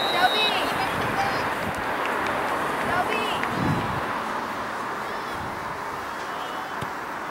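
Young women call out to each other in the distance.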